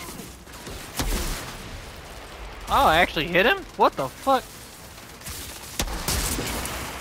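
A rifle fires with loud sharp cracks.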